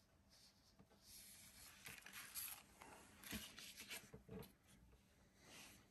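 Cardboard scrapes and rustles as a box is handled.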